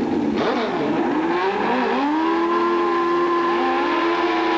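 A motorcycle engine revs up sharply close by.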